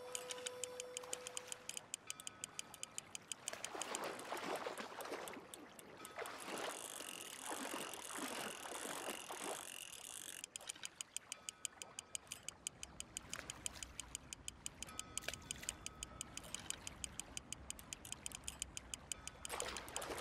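A fishing reel clicks rapidly.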